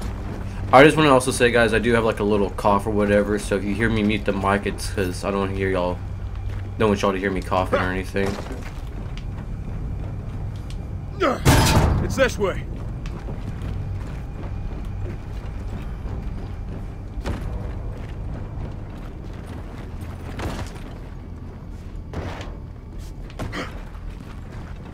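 Heavy boots thud on a hard floor.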